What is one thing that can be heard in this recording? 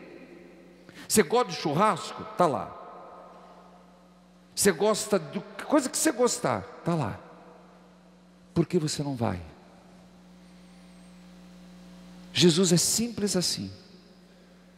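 A man sings through a headset microphone in a reverberant hall, in short phrases.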